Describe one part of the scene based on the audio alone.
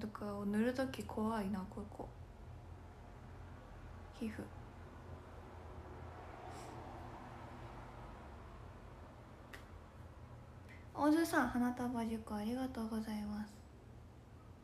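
A young woman talks softly and close to a microphone.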